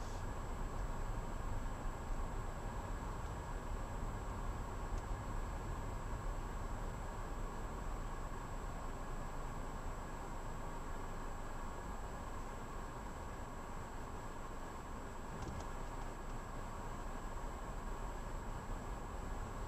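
A car rolls slowly on a paved road, its engine and tyres rumbling low as heard from inside the car.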